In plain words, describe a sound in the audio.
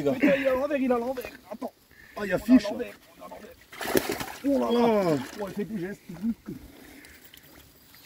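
Water splashes as a net is lowered into a lake.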